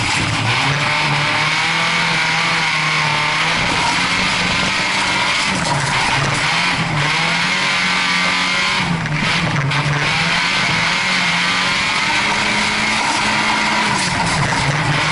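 Gravel and grit rattle against the underside of a car.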